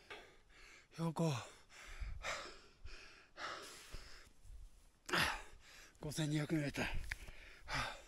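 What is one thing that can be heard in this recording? A man speaks close by in short, calm phrases.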